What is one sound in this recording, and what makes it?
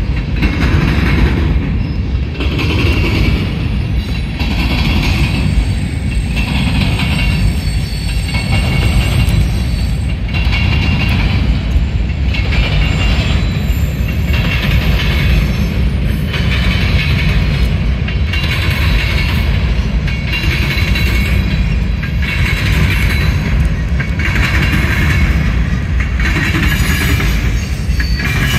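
A long freight train rumbles steadily past in the distance.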